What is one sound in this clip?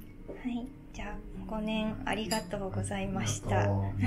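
Glasses clink together in a toast.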